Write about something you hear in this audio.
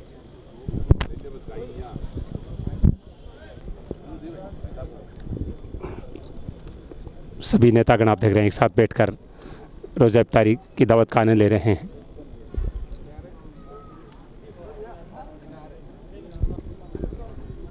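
A crowd of men murmurs and chats nearby.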